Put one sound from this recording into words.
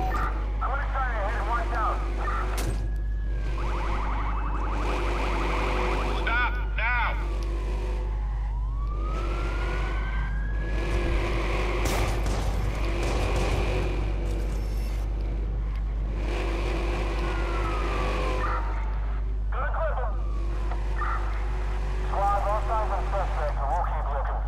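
A car engine hums and revs steadily in an echoing space.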